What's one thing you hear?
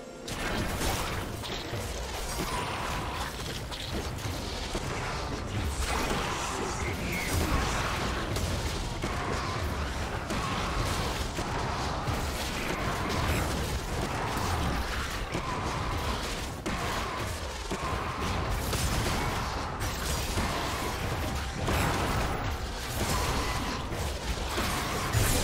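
Magic spells whoosh and blast in a battle.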